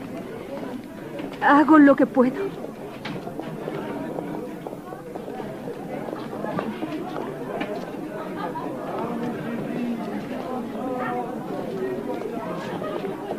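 A crowd murmurs and chatters all around.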